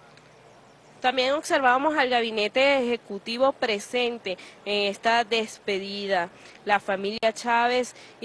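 A crowd chants loudly in unison.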